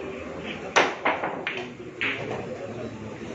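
Billiard balls knock together and roll.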